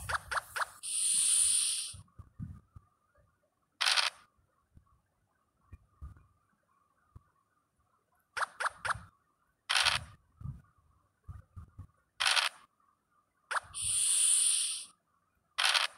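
A die rattles as it rolls in a game.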